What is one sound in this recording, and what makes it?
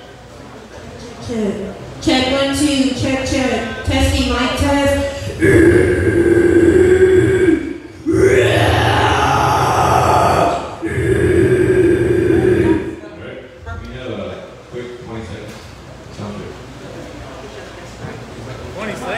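A band plays loud live music in an echoing room.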